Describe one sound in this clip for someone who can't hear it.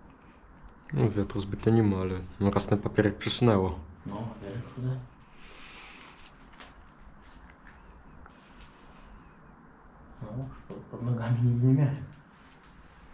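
A man speaks nearby in a low, hushed voice.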